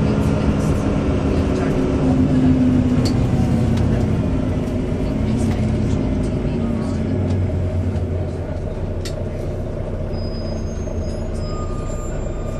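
Loose fittings on a bus rattle and click.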